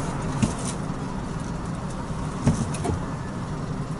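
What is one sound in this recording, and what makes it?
Tyres thump over joints in the road surface.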